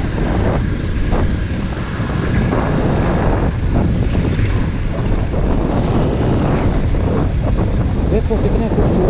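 Tyres rumble over a dirt road.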